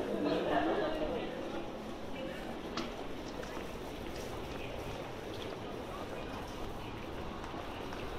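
Footsteps patter on a wet pavement.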